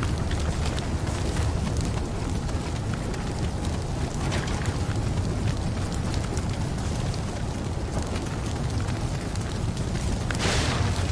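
A fire roars in a brazier.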